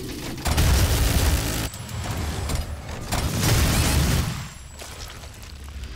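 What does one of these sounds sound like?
Explosions rumble loudly.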